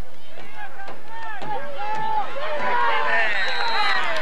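Young boys shout excitedly during play.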